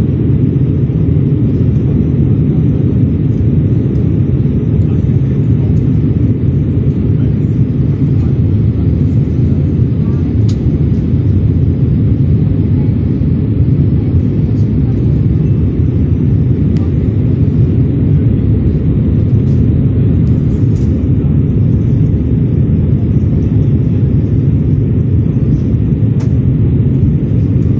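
A jet engine roars steadily from inside an airliner cabin.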